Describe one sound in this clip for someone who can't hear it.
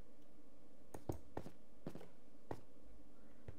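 Stone blocks are set down with short dull knocks.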